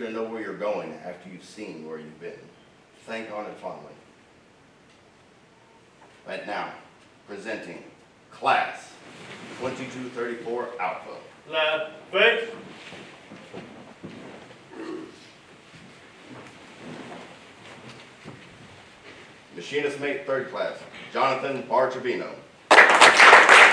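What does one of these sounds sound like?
A man speaks into a microphone, his voice echoing in a large hall.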